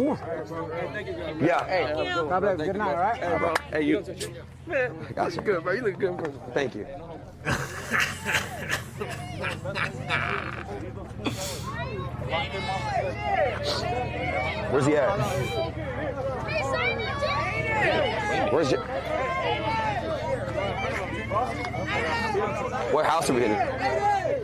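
Young men talk and shout over one another close by, outdoors.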